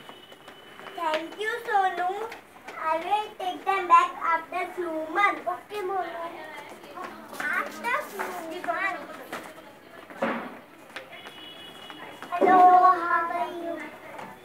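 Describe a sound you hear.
Young boys speak into microphones with animation, heard through a loudspeaker in an echoing hall.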